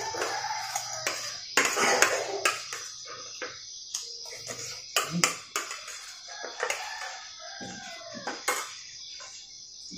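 A spoon scrapes and clinks on a plate.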